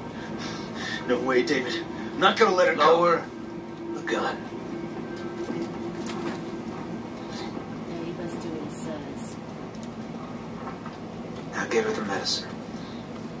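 A second man answers curtly, heard through a television speaker.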